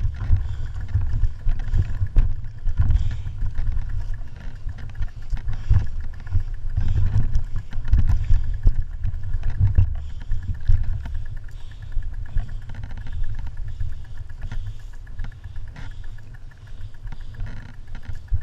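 A bicycle freewheel ticks steadily.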